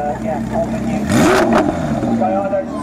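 A sports car engine revs up loudly and briefly.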